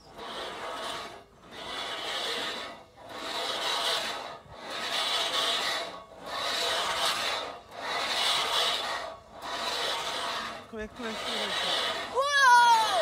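A swing seat rolls back and forth along a metal track in regular whooshing swoops.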